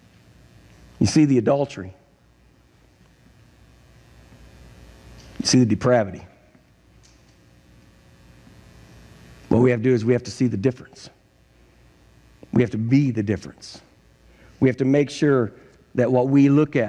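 An elderly man speaks calmly through a microphone in a large echoing hall, with pauses between phrases.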